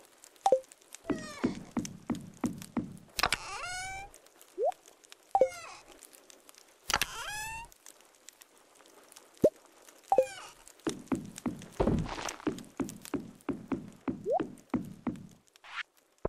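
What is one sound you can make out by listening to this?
Footsteps tap quickly on wooden boards.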